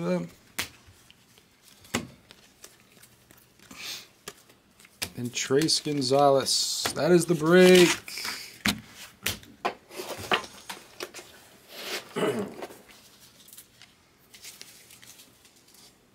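Trading cards click and rustle as hands shuffle them.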